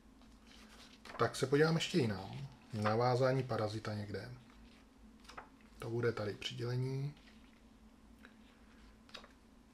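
Paper pages rustle and flap as a booklet is leafed through.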